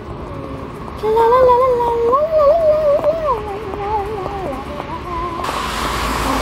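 A young woman sings softly close by.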